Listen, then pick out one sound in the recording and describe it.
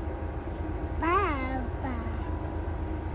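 A young child squeals with laughter close by.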